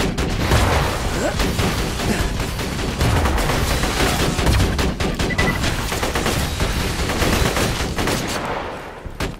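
Gunfire bursts out in rapid shots.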